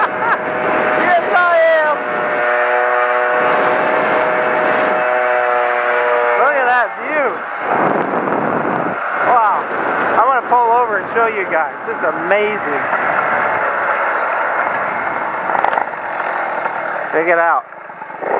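A motorcycle engine hums and revs while riding.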